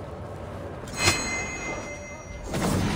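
A magical burst whooshes and crackles sharply.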